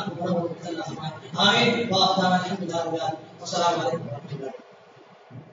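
A man speaks loudly and with passion through a microphone and loudspeakers.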